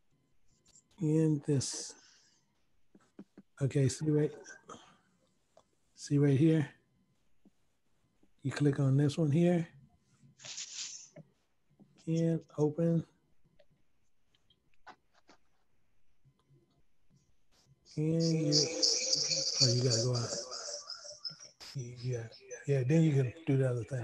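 A middle-aged man speaks calmly into a microphone, in short phrases with pauses, heard through an online call.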